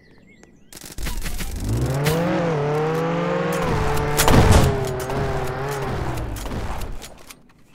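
A car engine revs loudly and hums steadily.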